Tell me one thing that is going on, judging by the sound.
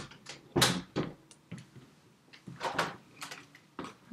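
An axe chops at wood with dull knocks.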